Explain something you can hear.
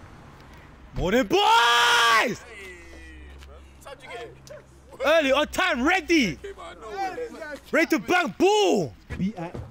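Young men talk and call out loudly nearby, outdoors.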